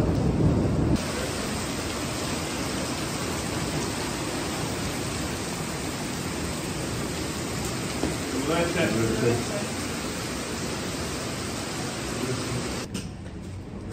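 Rain falls steadily on pavement outdoors.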